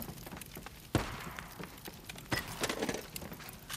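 Loose items rattle as they are searched.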